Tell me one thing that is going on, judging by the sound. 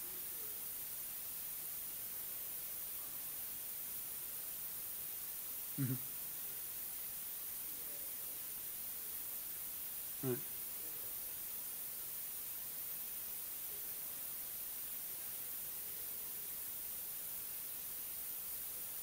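A man speaks faintly through a microphone in a large hall.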